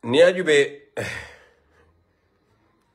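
A man chuckles softly.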